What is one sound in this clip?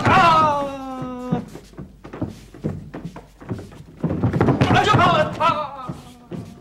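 Men shout sharply as they strike.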